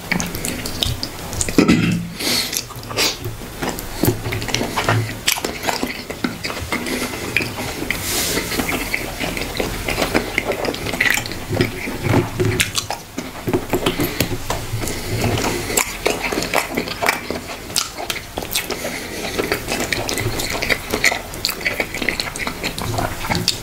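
Fingers squish and tear through soft, saucy food.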